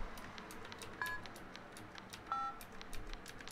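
Phone keys beep as a number is dialed.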